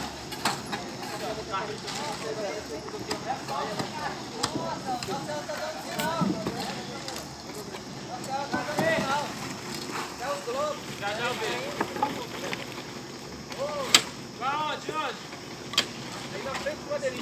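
Several men talk and call out with animation outdoors.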